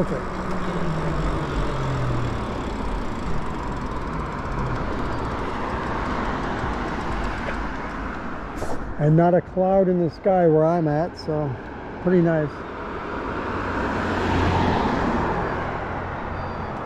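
Wind rushes over the microphone as a bicycle rides along.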